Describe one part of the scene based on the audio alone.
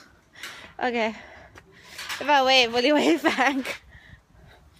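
A woman laughs close to the microphone.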